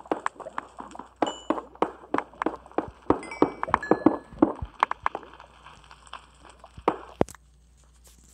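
A pickaxe chips rapidly at stone blocks.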